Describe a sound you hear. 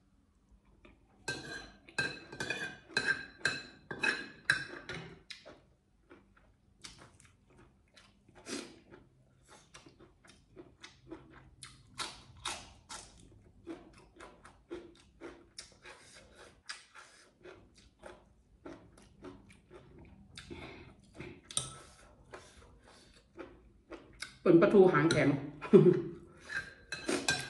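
A metal spoon scrapes and clinks on a plate.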